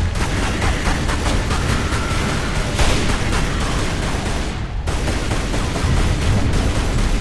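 Pistol shots fire in rapid succession, ringing out in an echoing hall.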